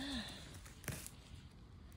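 Dry pine needles crackle as a hand brushes through them.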